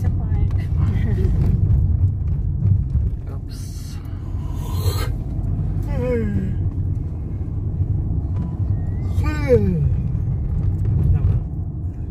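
A car engine hums steadily as the car drives along a street.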